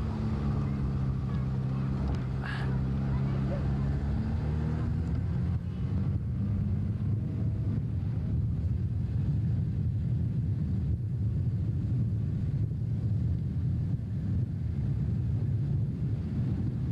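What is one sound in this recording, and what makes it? A car engine drones steadily as the car drives along a road.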